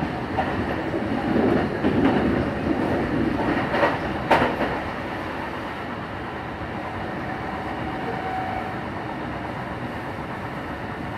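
A passing train rushes by close outside.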